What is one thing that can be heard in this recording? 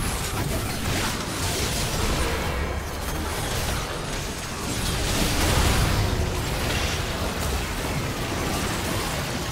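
Spell blasts and magical effects crackle and boom in a fierce fight.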